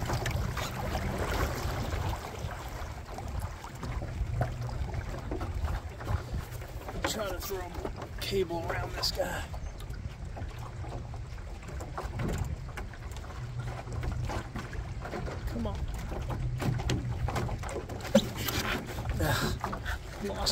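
Water laps against a small boat's hull.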